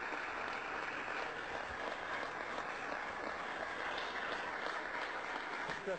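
A large crowd claps and murmurs in a big echoing hall.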